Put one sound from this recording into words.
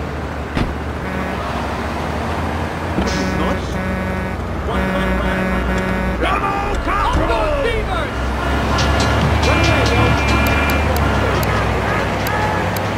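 Music plays over a car radio.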